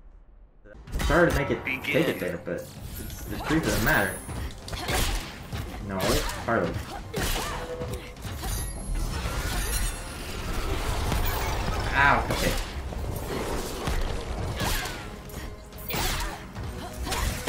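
Punches and kicks thud and crack in quick bursts.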